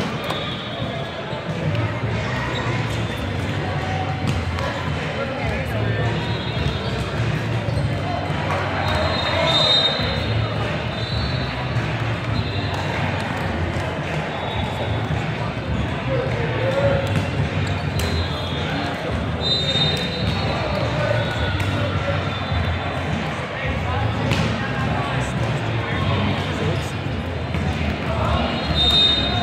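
A steady murmur of many voices echoes through a large hall.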